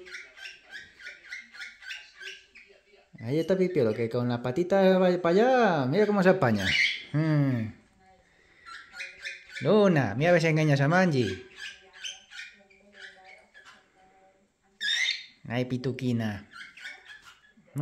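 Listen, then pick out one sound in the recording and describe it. A cockatiel chirps and whistles repeatedly, close by.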